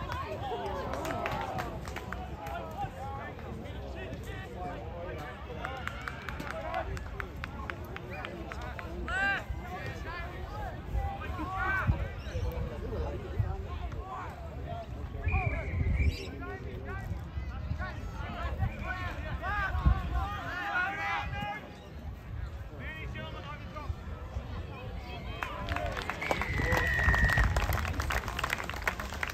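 Adult spectators nearby chatter and call out outdoors.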